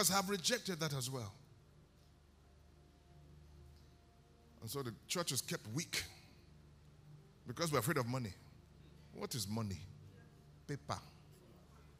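A man speaks emphatically through a microphone in a large echoing hall, with long pauses.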